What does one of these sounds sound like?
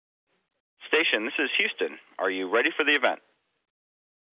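A man speaks calmly over a radio link.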